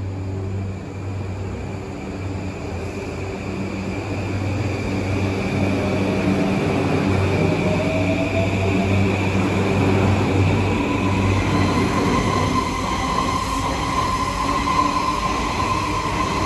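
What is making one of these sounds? Train wheels rumble and clatter over the rails, growing louder.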